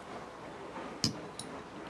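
A bottle cap pops off with a sharp metallic click.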